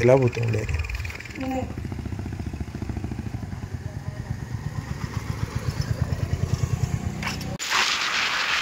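A motorcycle engine putters close by.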